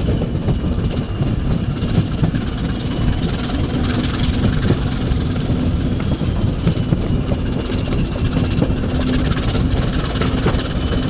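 Wind rushes past the open window of a moving train.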